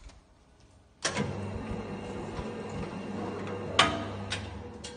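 A can sealing machine hums and whirs steadily.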